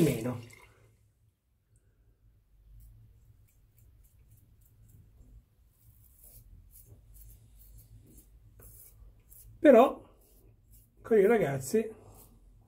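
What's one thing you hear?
A razor scrapes softly across stubble.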